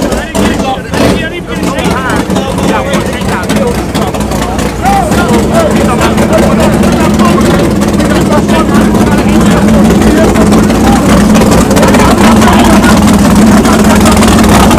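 A car engine idles with a low rumble.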